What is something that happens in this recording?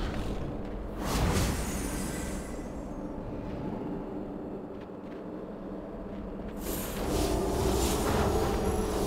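Magic spells whoosh and shimmer in bursts.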